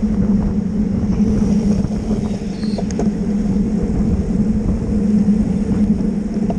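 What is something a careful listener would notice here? A bicycle chain whirs and clicks.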